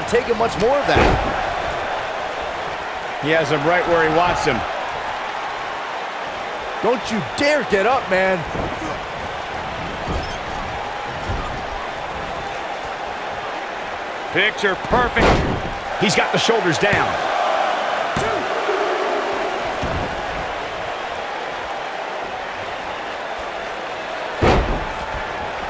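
Bodies slam heavily onto a wrestling ring mat with loud thuds.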